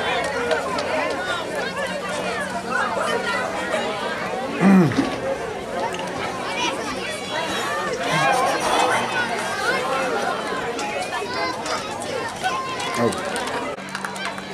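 A crowd of young players chatters and calls out all at once outdoors.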